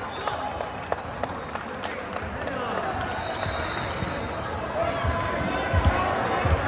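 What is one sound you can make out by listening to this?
Players chatter and call out in a large echoing gym.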